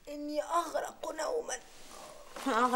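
A young woman speaks sleepily.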